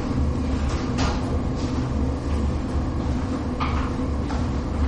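A man walks with soft footsteps on a hard floor.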